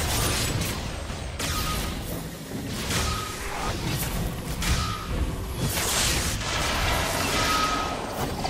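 A loud magical blast whooshes and booms.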